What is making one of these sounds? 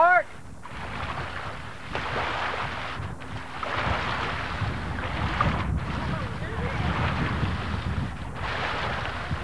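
Water splashes and sloshes as people wade through a lake.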